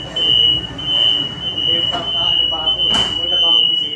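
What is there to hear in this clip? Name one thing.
Train doors slide shut with a thud.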